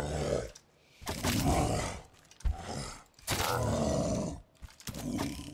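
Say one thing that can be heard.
A bear growls loudly.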